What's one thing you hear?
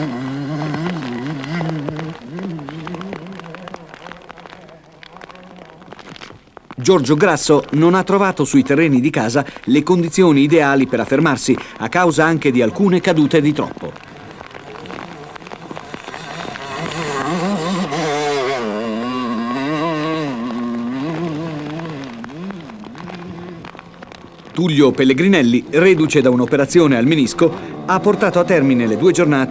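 A dirt bike engine revs hard and whines, rising and falling, sometimes distant and sometimes close.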